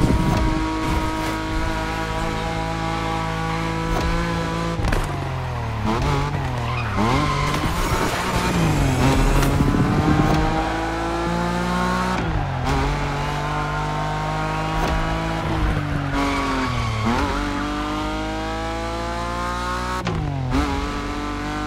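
A car engine roars loudly, rising in pitch and dropping sharply with each gear change.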